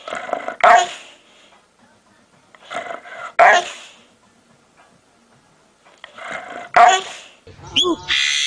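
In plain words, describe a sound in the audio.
A dog growls and howls in bursts close by.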